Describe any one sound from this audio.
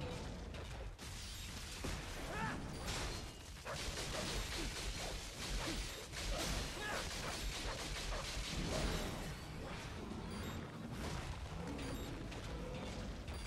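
Metal blades clash and slash in quick bursts.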